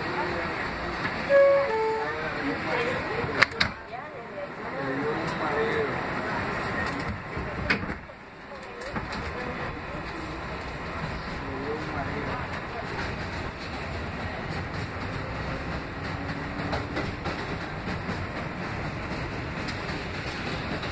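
A train rumbles steadily along its tracks.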